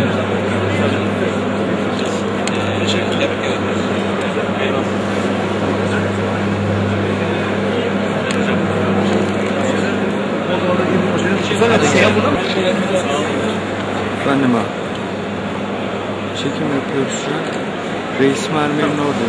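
A crowd of people chatters in a busy, echoing hall.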